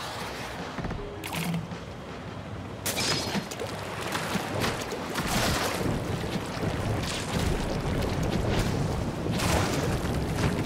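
Thick liquid paint splashes and splatters in wet bursts.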